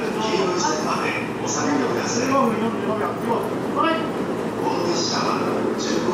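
A train stands idling at a platform with a steady hum.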